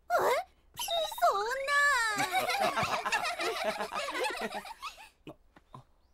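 A young man speaks cheerfully.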